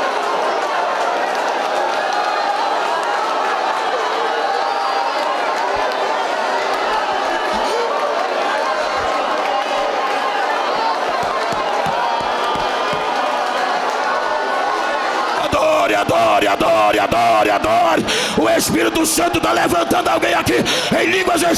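A crowd of men and women prays aloud together in a large echoing hall.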